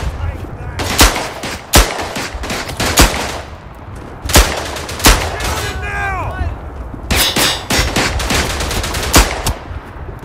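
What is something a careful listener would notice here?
A revolver fires several loud shots.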